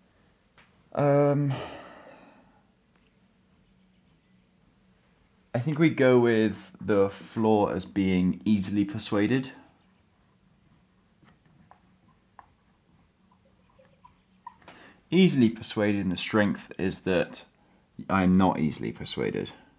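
A young man speaks calmly and close by, with pauses.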